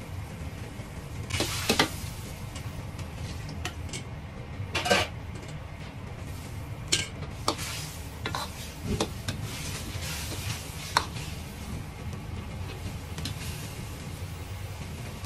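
Food sizzles and bubbles steadily in a hot pan.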